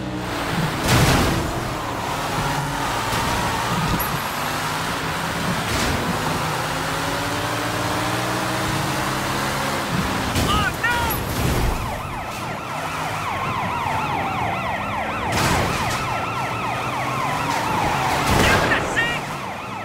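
Cars crash into each other with loud bangs.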